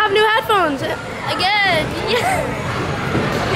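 A young woman squeals excitedly nearby.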